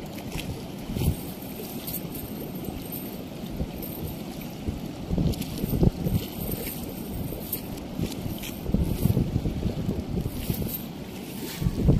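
A fishing net rustles and scrapes on concrete.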